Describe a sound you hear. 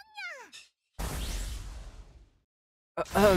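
A whooshing game effect sweeps past.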